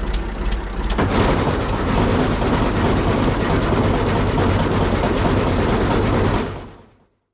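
A mowing machine starts up and rattles loudly as its blades spin.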